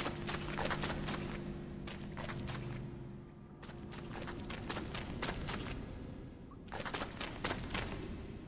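Quick footsteps patter over hard ground.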